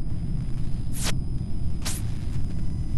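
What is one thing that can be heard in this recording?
Switches click sharply, twice.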